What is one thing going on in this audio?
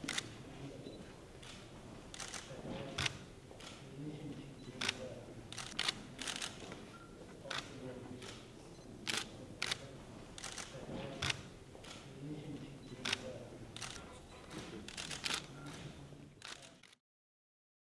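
Two men talk quietly at a distance.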